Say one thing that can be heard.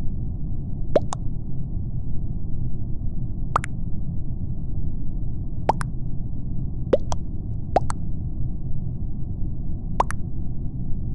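A short chat notification blip sounds as each new message arrives.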